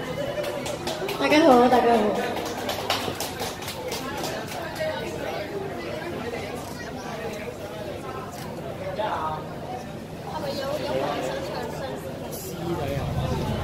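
A young woman laughs and chats nearby.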